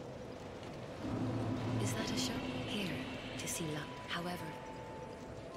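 A young woman speaks casually into a close microphone.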